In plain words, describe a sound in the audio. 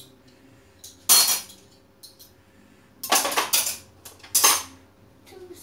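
Metal cutlery clatters in a drawer.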